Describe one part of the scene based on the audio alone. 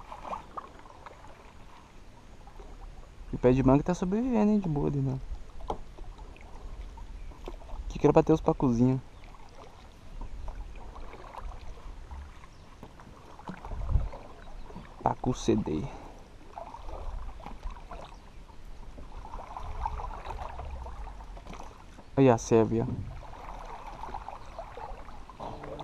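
A paddle splashes and dips into calm water.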